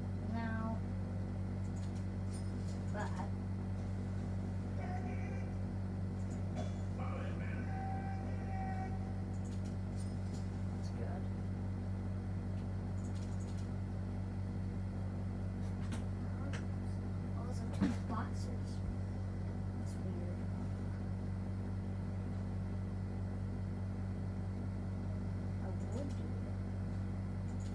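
A video game plays beeps and effects through a television speaker.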